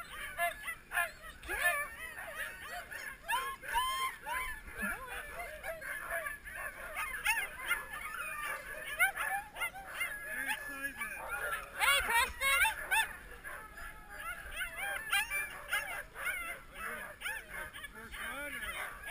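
Several dogs whine and yip excitedly close by.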